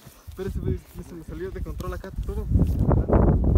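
A man talks outdoors nearby.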